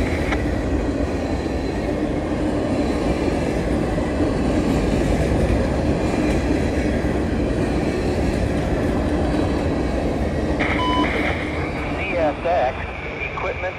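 Freight cars rumble and clatter loudly along the rails close by.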